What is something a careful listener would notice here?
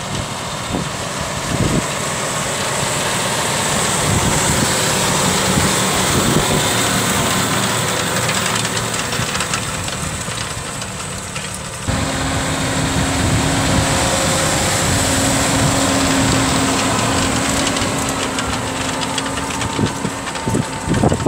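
A cultivator rattles and scrapes through dry soil.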